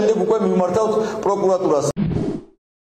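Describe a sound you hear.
A man speaks firmly into a microphone to a room.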